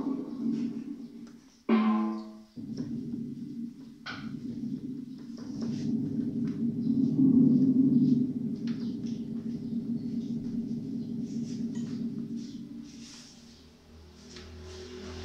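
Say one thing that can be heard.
An electronic keyboard plays a melody.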